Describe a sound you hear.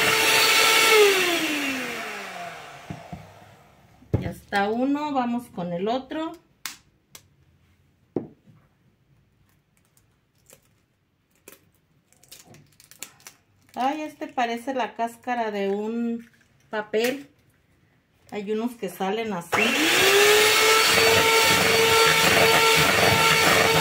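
An electric hand mixer whirs through batter in a bowl, then winds down.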